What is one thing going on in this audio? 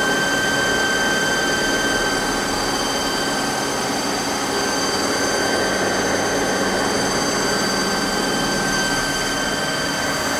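A cutting tool scrapes and hisses against spinning metal.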